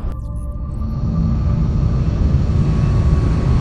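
A spacecraft's engines rumble deeply.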